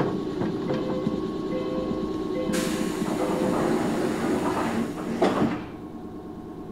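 A train rumbles along the tracks and slows to a stop.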